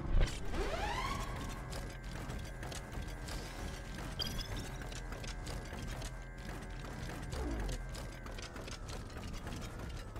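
Heavy metal footsteps thud as a large machine walks.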